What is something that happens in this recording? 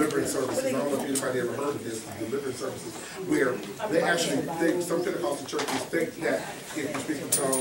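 A man speaks with animation to a room.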